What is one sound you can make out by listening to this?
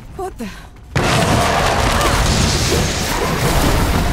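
A magic blast erupts with a loud crackling roar.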